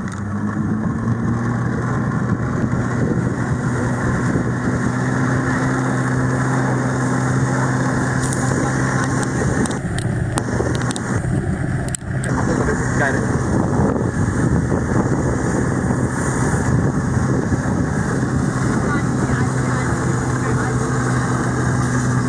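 An engine drones steadily nearby.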